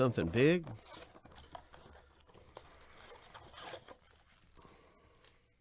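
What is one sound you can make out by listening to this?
Cardboard packaging scrapes and rustles as hands handle it.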